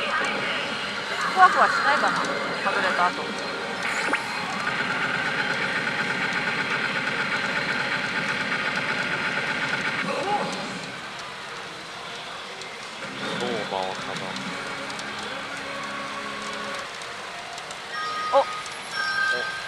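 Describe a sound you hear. A pachinko machine plays loud electronic music and jingles.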